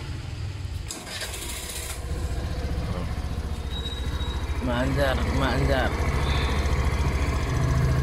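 A scooter engine starts and idles with a steady low rumble.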